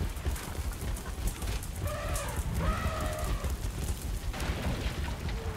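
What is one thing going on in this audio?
Heavy footsteps run across stone.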